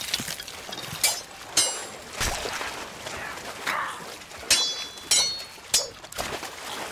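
Swords clash and clang in quick strikes.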